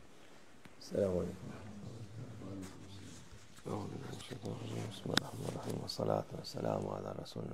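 An elderly man speaks calmly, close by.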